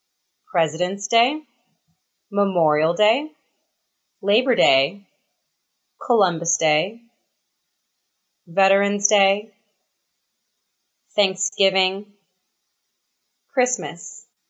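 A woman speaks in short phrases with long pauses, close to a microphone.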